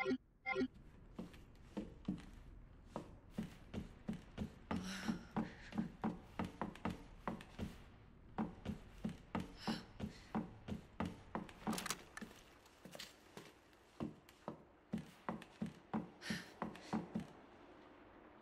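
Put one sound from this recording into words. Footsteps walk on a wooden floor.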